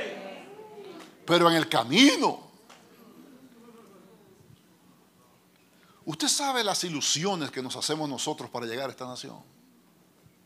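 A middle-aged man speaks with animation into a microphone, heard through loudspeakers in an echoing hall.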